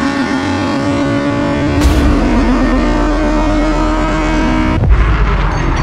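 Car engines rev loudly and roar.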